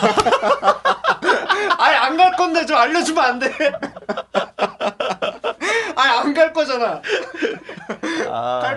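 A young man laughs loudly and breathlessly close to a microphone.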